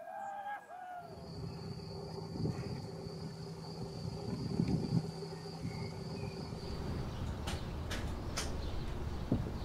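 Small birds splash and flutter in shallow water.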